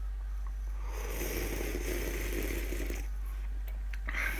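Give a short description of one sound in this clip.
A man gulps a drink from a can.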